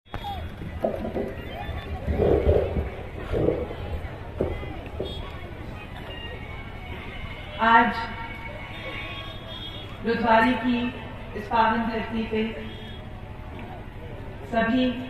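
A young woman speaks with animation into a microphone, heard through loudspeakers outdoors.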